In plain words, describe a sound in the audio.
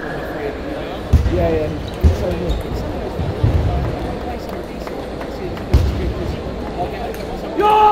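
A table tennis ball clicks back and forth off paddles and a table in a large echoing hall.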